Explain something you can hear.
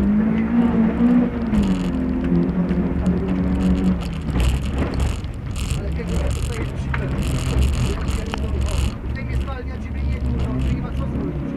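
Tyres crunch and rumble over a rough dirt track.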